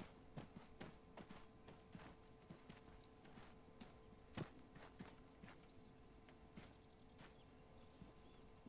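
Footsteps crunch through dry leaves on a forest floor.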